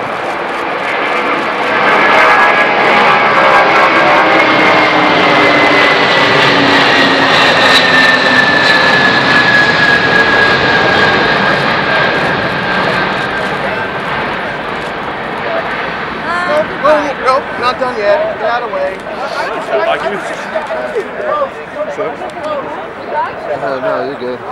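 A large jet airliner roars loudly overhead as it climbs away, its whining engines slowly falling in pitch and fading into the distance.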